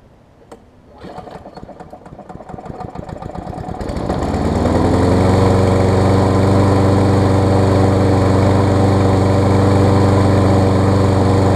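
A lawn mower engine sputters, catches and roars steadily up close.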